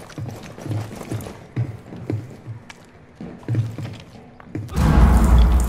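Footsteps thud at a steady walking pace.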